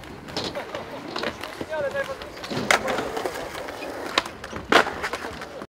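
Skateboard wheels roll and clack on concrete outdoors.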